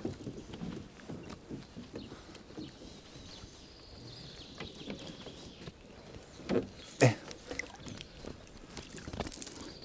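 Water splashes and trickles as a man's hands work in it.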